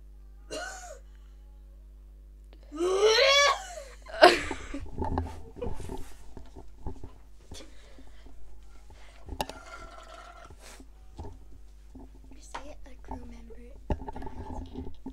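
A young girl speaks and sings playfully into a microphone up close.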